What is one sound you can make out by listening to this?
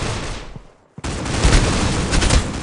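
A gun fires in a rapid, loud burst.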